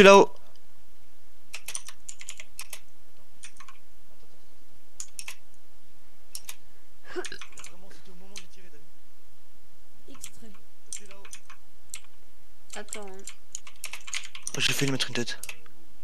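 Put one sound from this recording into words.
Keyboard keys clack in quick bursts.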